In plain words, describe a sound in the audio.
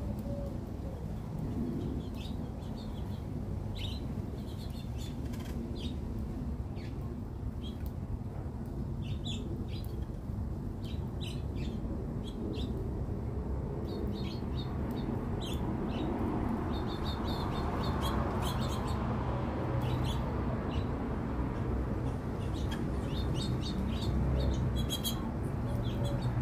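Small birds chirp and tweet nearby outdoors.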